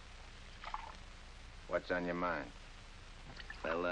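Glass clinks as a drink is poured.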